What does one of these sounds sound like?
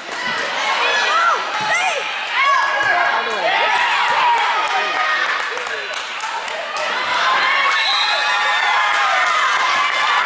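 A volleyball is struck with a smack.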